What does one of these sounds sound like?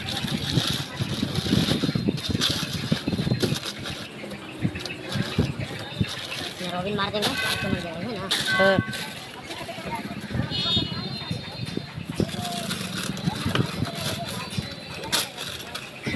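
Newspaper rustles and crinkles close by as it is handled.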